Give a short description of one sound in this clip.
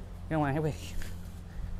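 A man speaks briefly nearby.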